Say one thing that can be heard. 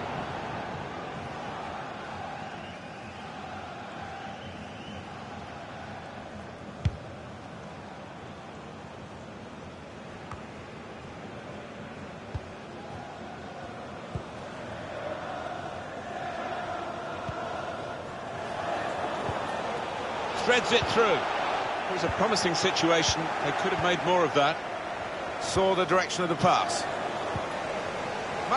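A stadium crowd murmurs and cheers steadily.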